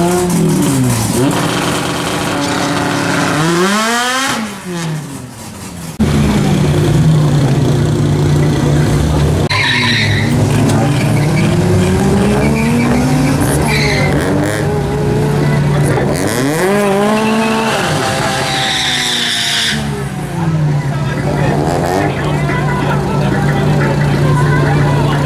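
Car engines roar loudly and rise in pitch through gear changes as the cars speed off.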